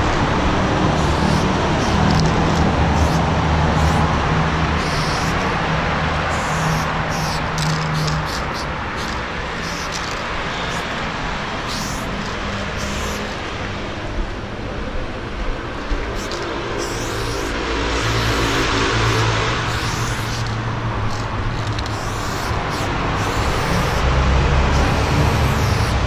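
Spray paint hisses from a can in short and long bursts.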